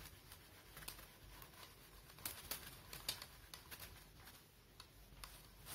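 A cloth eraser rubs across a whiteboard.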